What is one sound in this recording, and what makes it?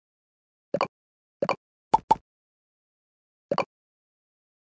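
Short soft game plops sound as balls drop into place.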